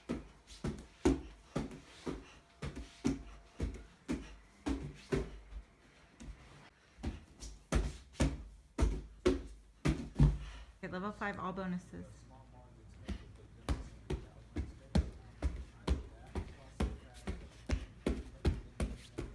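Hands and feet thump rhythmically on a padded cushion.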